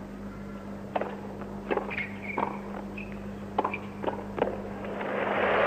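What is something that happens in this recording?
Tennis balls are struck with sharp pops in a rally.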